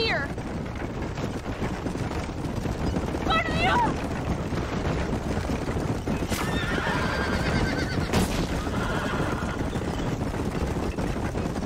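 Wooden wagon wheels rattle and rumble over a dirt track.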